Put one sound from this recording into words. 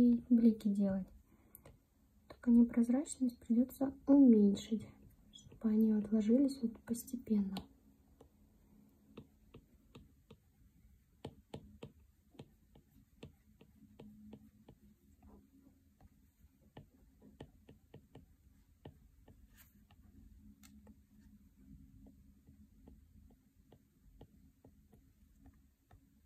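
A stylus taps and clicks lightly on a glass tablet.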